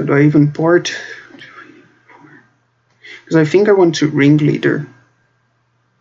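A young man speaks casually and close into a microphone.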